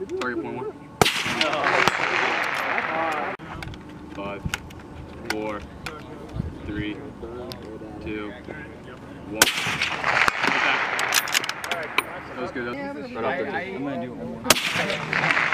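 A rifle fires loud single shots that echo outdoors.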